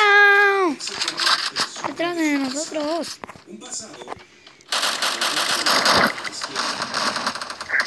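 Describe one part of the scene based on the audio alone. Gunshots crack in short, quick bursts.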